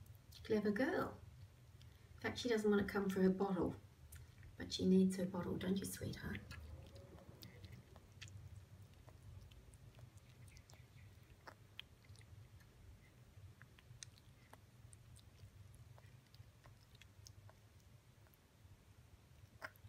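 A young fruit bat chews wet melon flesh.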